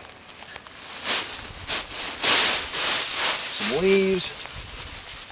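Dry leaves pour out of a bin and rustle onto a pile.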